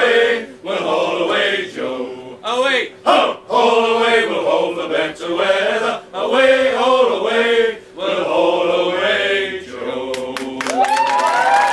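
A men's choir sings together outdoors.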